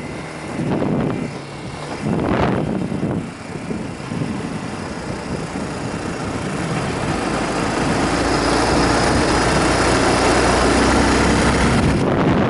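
Wind rushes past a helmet, growing louder.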